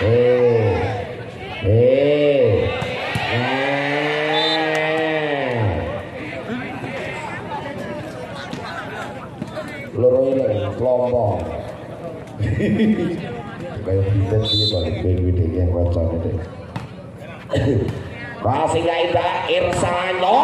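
A volleyball is struck hard with a slap.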